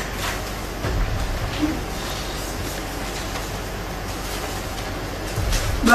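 Papers rustle as they are handled.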